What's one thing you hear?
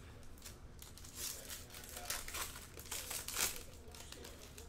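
A foil wrapper crinkles loudly.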